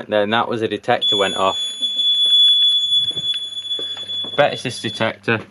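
A control panel buzzer beeps with a steady high tone.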